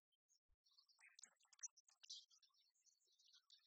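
Dice rattle and tumble into a tray.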